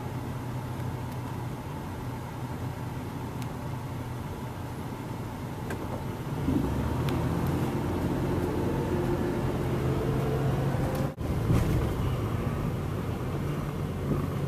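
A car engine rumbles steadily, heard from inside the car.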